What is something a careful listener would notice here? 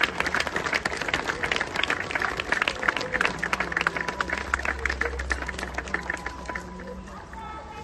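A large crowd claps steadily outdoors, then the applause fades.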